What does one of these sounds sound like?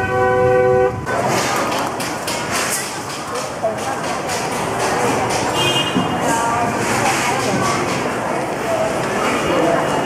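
A crowd chatters and murmurs all around.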